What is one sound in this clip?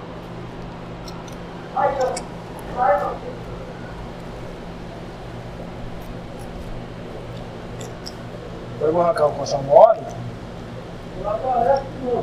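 A knife cuts through meat.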